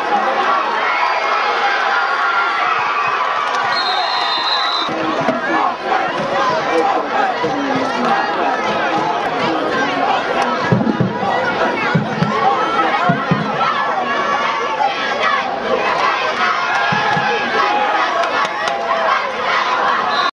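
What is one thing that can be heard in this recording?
A crowd of spectators cheers and shouts in an open-air stadium.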